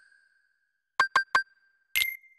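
Short electronic beeps click through a game menu.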